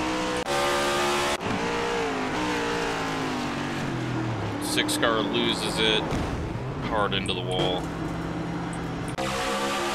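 A racing car engine roars loudly, its pitch rising and falling as it shifts gears.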